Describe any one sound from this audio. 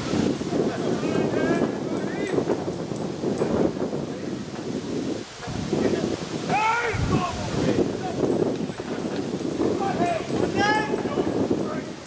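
Men shout to each other across an open field.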